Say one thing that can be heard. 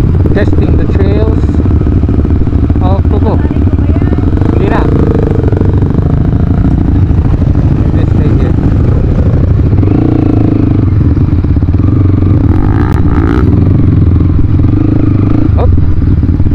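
Other dirt bike engines rumble nearby.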